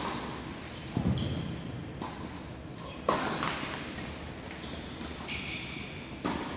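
Tennis balls are struck with rackets with sharp pops that echo through a large indoor hall.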